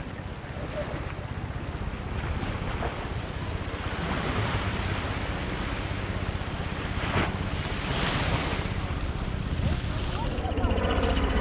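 Waves splash against stones close by.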